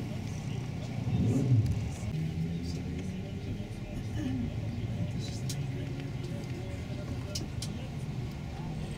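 A bus engine hums from inside the bus as it drives along.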